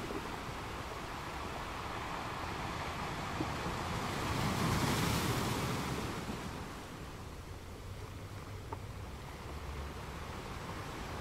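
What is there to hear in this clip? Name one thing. Water washes and hisses over a rocky shore.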